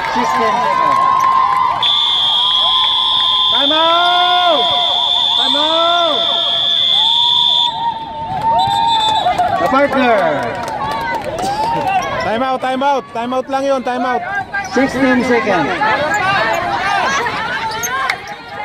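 A crowd of young people cheers and shouts loudly nearby outdoors.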